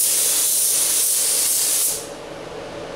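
A spray gun hisses loudly as it sprays paint.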